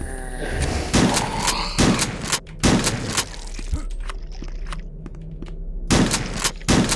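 A shotgun fires loud blasts that boom and echo.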